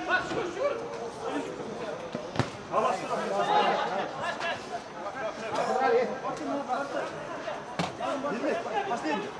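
Young men shout and call out across an outdoor pitch.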